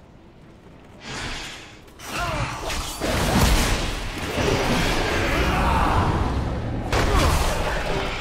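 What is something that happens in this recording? Weapons clash and spells burst loudly in a game fight.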